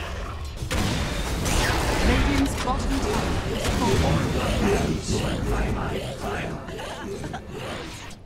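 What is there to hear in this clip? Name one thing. Fiery explosions burst one after another.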